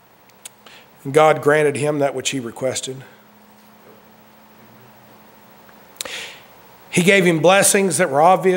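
A man speaks slowly and emphatically into a microphone.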